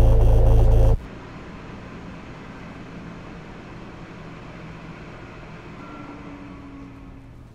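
A subway train rumbles steadily and quietly.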